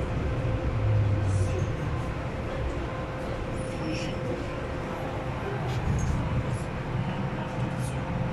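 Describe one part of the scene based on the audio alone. A train rumbles and hums steadily as it moves through a station.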